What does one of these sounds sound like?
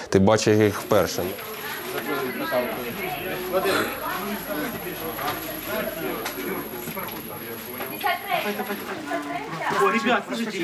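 A foil blanket crinkles and rustles.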